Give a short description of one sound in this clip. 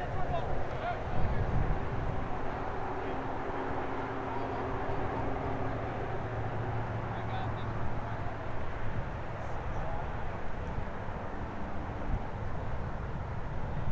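Wind rumbles across an open field outdoors.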